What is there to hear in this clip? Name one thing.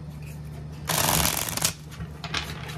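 Playing cards are shuffled with a quick riffle.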